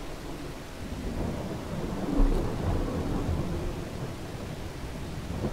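A man talks quietly into a microphone.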